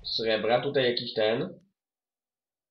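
A young man speaks briefly into a microphone, close by.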